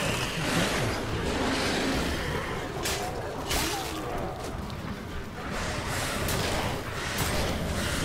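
A deep magical energy hums and roars steadily.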